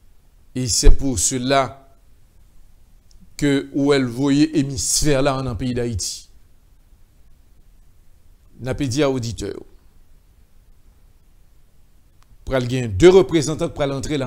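A middle-aged man speaks calmly into a close microphone, in short phrases with pauses.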